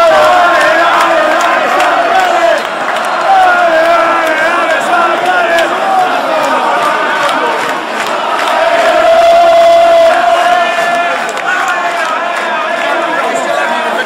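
A large crowd of fans chants loudly in a big stadium.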